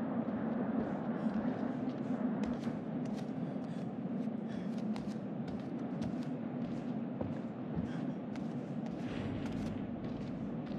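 Bare feet step softly across a floor.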